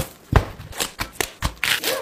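Lettuce leaves tear apart.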